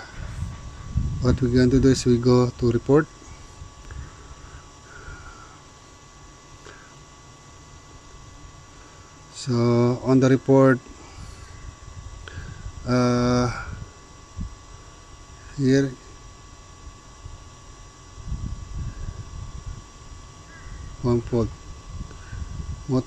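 A finger taps lightly on a touchscreen.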